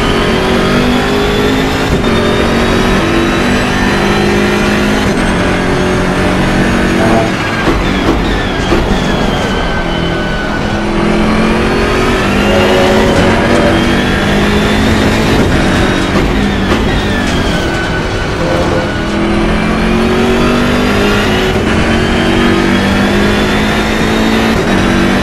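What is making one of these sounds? A racing car engine roars loudly, revving up through the gears and dropping as it brakes.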